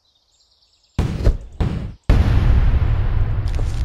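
Video game music starts loudly and plays on.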